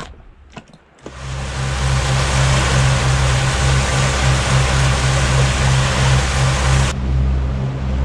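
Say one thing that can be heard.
Water rushes and churns behind a moving boat.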